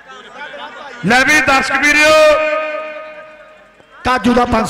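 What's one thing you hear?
A man talks loudly and with animation.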